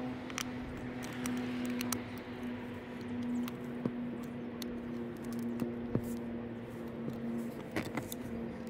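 Plastic parts click and tap as hands handle a small motor.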